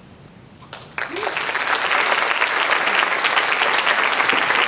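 A concert band plays in a large hall.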